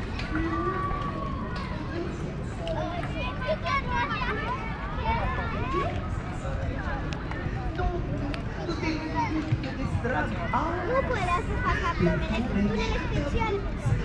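Children shout and squeal playfully nearby.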